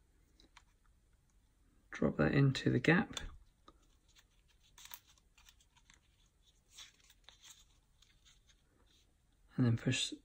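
Cardboard pieces rustle and tap softly as hands fit them together.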